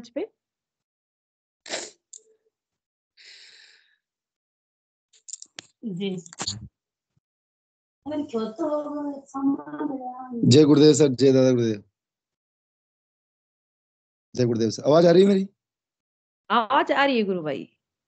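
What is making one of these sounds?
A woman speaks cheerfully over an online call.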